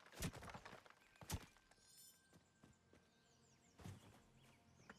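A pickaxe strikes rock with sharp knocks.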